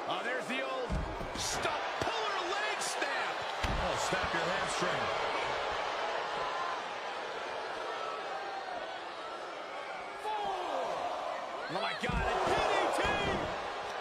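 Heavy bodies thud onto a mat.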